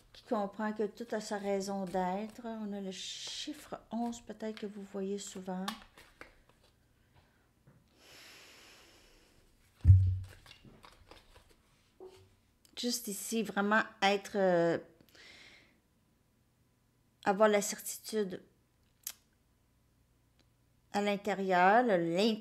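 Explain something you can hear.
A woman speaks close to a microphone, with pauses.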